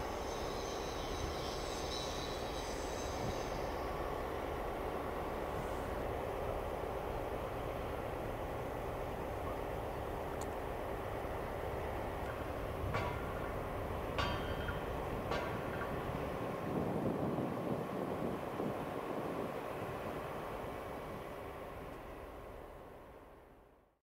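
Wind blows steadily across open ground outdoors.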